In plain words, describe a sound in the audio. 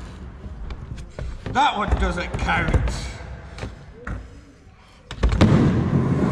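A skateboard's tail knocks against the concrete.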